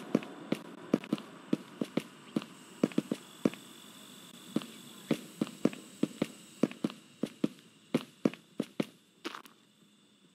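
Quick footsteps thud on hard pavement.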